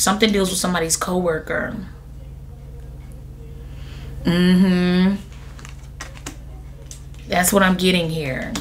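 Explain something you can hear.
A young woman speaks calmly and closely into a microphone, with pauses.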